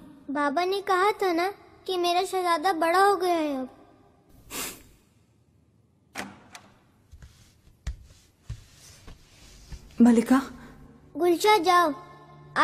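A young woman speaks softly and warmly up close.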